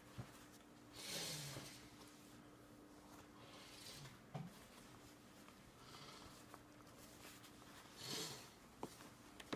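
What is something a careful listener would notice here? A toddler sighs and breathes heavily close by.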